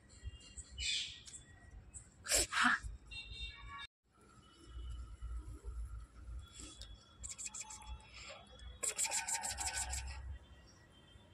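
A puppy whimpers and squeals close by.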